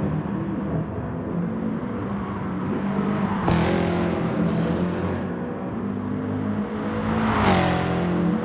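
A racing car engine roars loudly at high revs, shifting pitch as it changes gear.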